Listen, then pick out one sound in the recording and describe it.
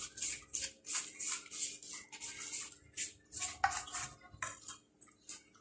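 A brush dabs softly on thin pastry.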